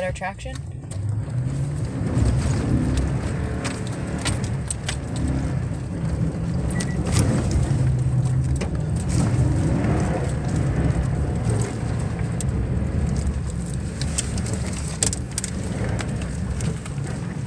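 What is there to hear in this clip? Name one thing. A car rumbles steadily as it drives along.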